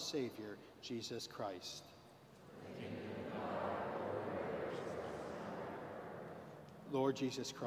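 A man speaks slowly through a microphone in a large echoing hall.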